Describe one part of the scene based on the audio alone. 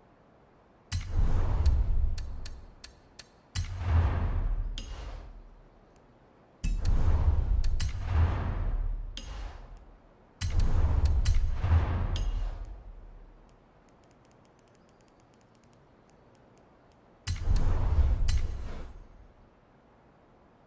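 Whooshing menu sounds rise and fade in bursts, with quick clicks.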